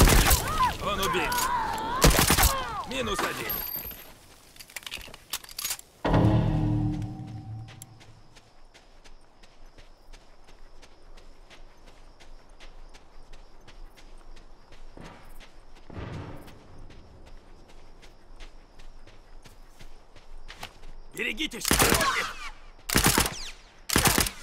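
Gunshots crack loudly in a fight.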